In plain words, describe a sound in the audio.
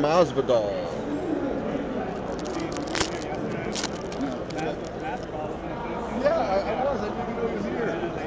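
Card packs rustle and crinkle in hands.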